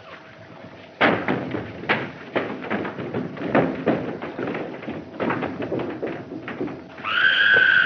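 Men scuffle and grapple in a fistfight.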